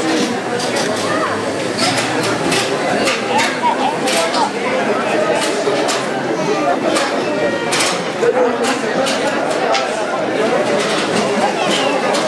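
A crowd of men and women chatters all around under a large echoing roof.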